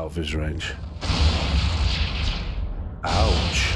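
A spaceship whooshes as it warps away at speed in a video game.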